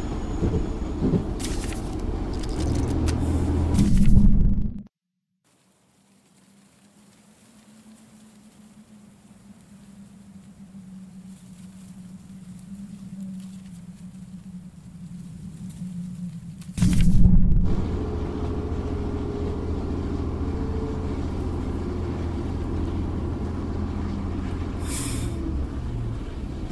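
A train rumbles heavily along metal rails.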